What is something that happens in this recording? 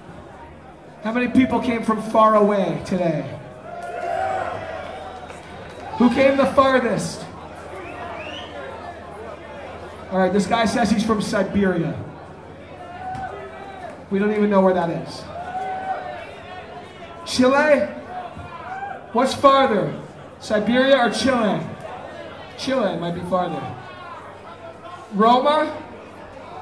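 A man shouts into a microphone through loud speakers in a large echoing hall.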